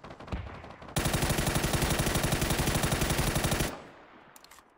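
Rapid gunshots fire in quick bursts close by.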